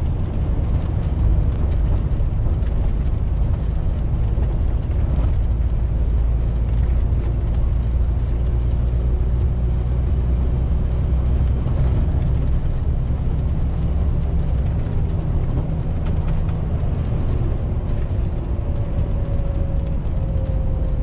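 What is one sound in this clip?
A truck engine hums low and steady from inside the cab.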